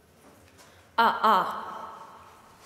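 A young woman sings two loud high notes close to a microphone.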